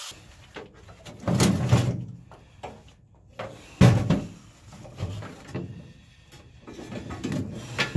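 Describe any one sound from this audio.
A loose metal panel clanks and scrapes against metal.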